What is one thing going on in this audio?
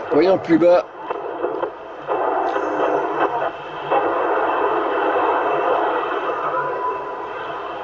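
A radio hisses and crackles with static while being tuned.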